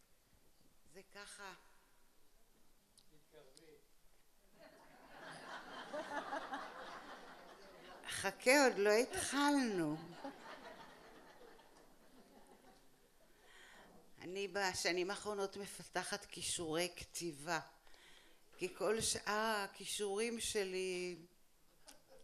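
An elderly woman speaks with animation into a microphone, in bursts with pauses.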